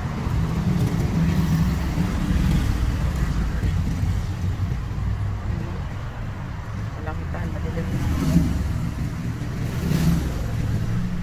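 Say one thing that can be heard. A car engine idles with a low, steady rumble heard from inside the car.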